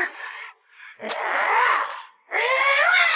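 A monster roars loudly.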